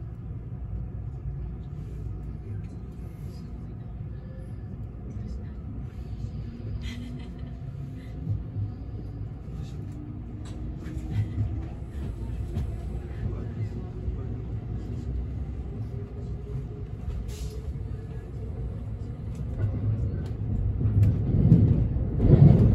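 A train rumbles low and steadily as it pulls out and gathers speed.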